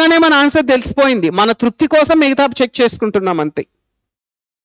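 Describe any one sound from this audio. A man speaks clearly and calmly, close to a microphone.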